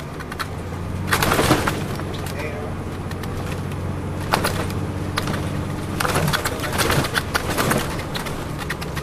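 A bus cabin rattles over bumps in the road.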